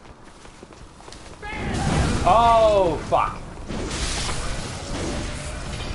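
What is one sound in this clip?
Blades slash and strike in a fierce fight.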